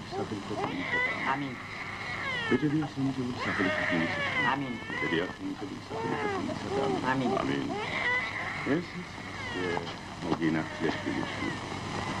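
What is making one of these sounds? A man sings out in a loud, wavering voice.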